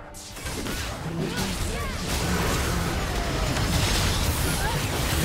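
Game spells and blasts crash and boom in a fast battle.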